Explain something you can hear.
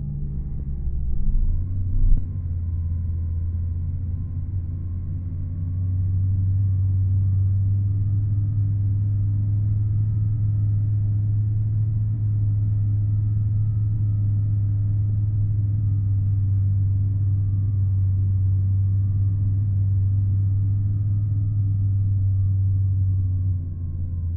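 A bus engine hums low and steady, growing louder as it speeds up.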